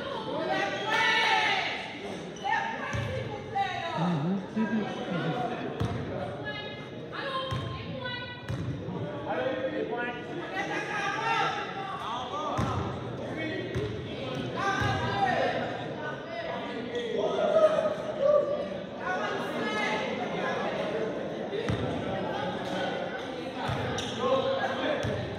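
Young players call out to each other in a large echoing gym.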